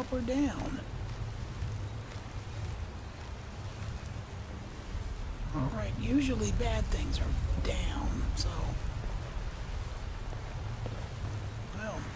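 Flames crackle and hum steadily.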